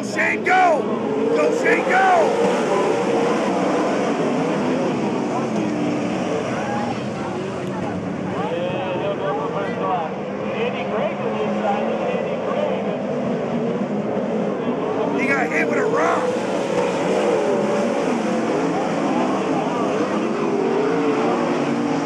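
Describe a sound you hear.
A crowd of spectators cheers and shouts nearby.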